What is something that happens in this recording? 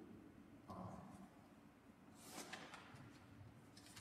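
An elderly man speaks quietly in a large echoing hall.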